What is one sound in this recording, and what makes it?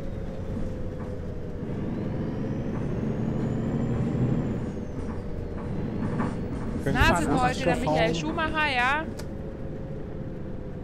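A bus engine rumbles low and steadily as the bus drives along.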